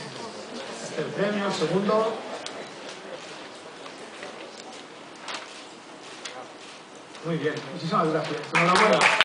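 A man speaks into a microphone over a loudspeaker in a large room, announcing calmly.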